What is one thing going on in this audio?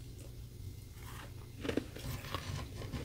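Ice crunches loudly between teeth close up.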